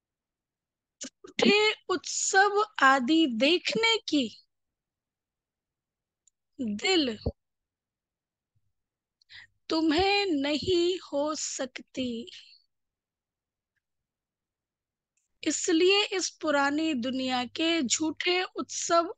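A woman speaks calmly into a microphone, with pauses.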